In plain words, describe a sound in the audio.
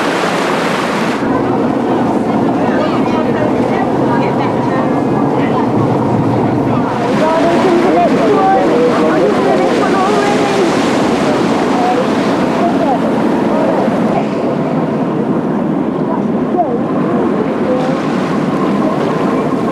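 Water rushes and splashes in a boat's wake.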